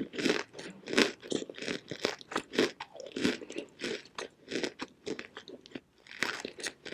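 Chalky rock crumbles and scrapes between fingers, very close up.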